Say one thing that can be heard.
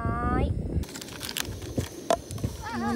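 A plastic packet crinkles.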